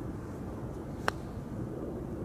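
A putter taps a golf ball with a light click.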